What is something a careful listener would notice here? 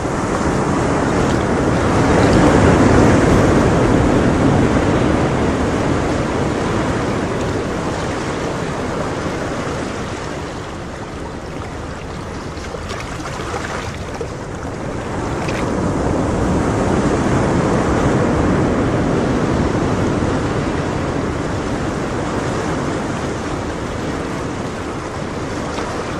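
Water bubbles and gurgles steadily in an aquarium.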